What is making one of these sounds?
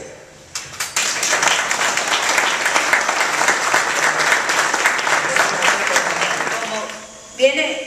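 A small crowd applauds.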